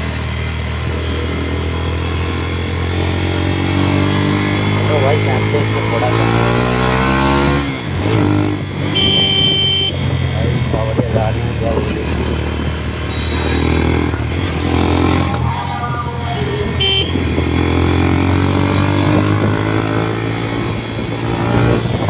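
A motorcycle engine hums and revs up and down while riding.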